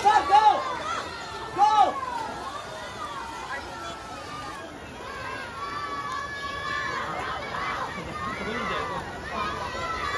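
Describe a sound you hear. Swimmers splash and kick through the water.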